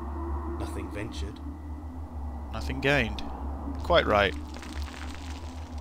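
Footsteps crunch on a rocky floor.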